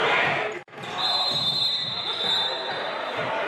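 Basketball shoes squeak on the wooden floor.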